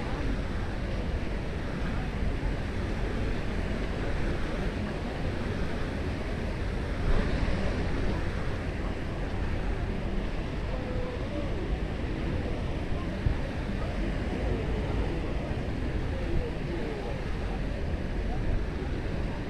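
Wind blows steadily past the microphone.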